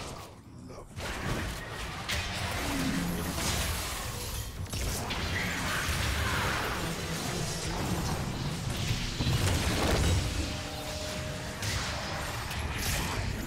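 Video game spells and hits crackle and whoosh.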